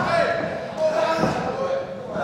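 A kick lands with a thud on a wrestler.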